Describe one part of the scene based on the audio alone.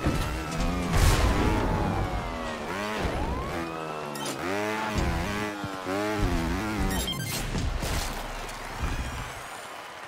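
A motorbike engine revs and whines up and down.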